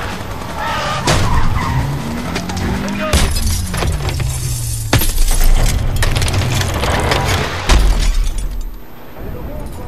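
Metal scrapes and creaks as a vehicle tumbles.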